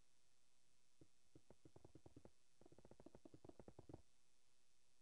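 Blocky footsteps tap quickly on stone.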